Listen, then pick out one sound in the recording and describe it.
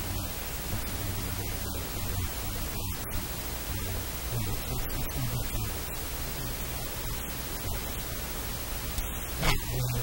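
A middle-aged man speaks calmly into a close microphone.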